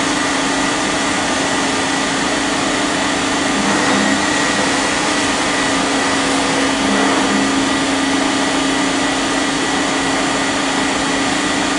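A cutting tool grinds against metal.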